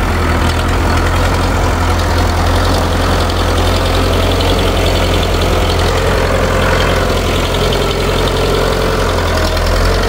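A mower clatters through tall grass.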